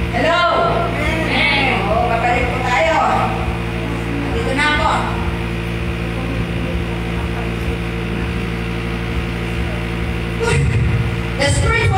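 A woman speaks into a microphone.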